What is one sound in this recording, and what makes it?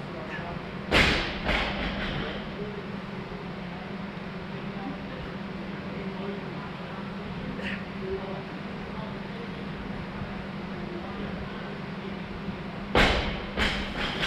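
A man drops onto a hard floor with heavy thuds.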